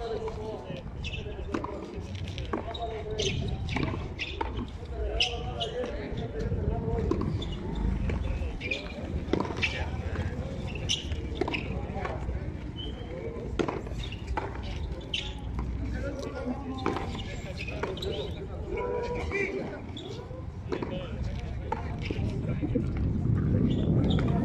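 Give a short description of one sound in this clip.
Sneakers scuff and squeak on a concrete court.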